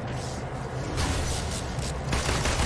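An electric blast crackles and buzzes loudly.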